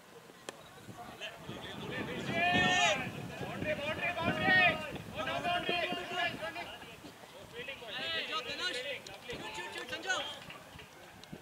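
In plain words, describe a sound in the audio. Men shout and call out on an open field.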